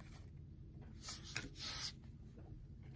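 Trading cards slide and rustle softly against each other.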